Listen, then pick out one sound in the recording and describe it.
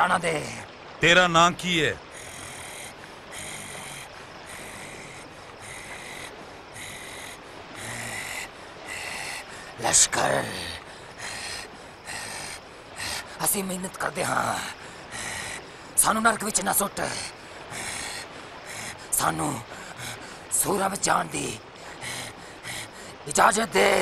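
A man shouts and speaks in a strained, wild voice close by.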